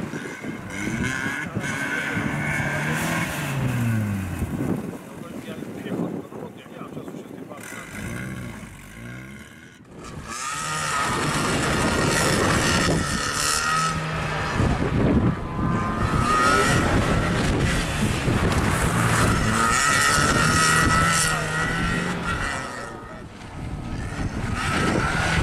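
A car engine revs hard and rises and falls in pitch.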